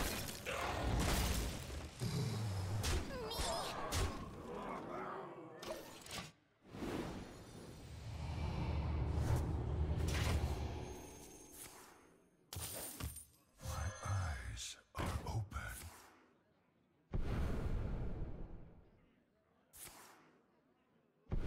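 Game spell effects whoosh and chime.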